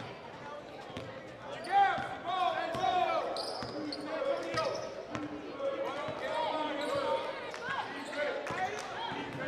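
A basketball bounces on the court with sharp thuds.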